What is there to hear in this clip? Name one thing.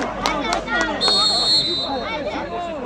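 A referee's whistle blows a short, shrill blast at a distance.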